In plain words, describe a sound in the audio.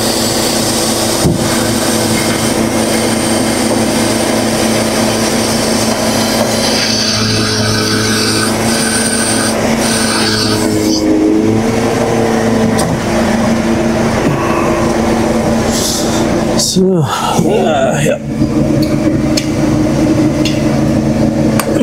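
A large diesel engine hums steadily close by.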